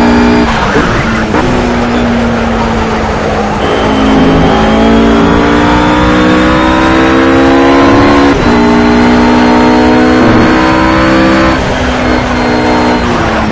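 A GT3 race car engine roars at full throttle.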